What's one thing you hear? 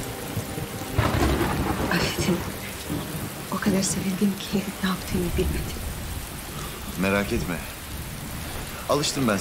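A man speaks softly and close by.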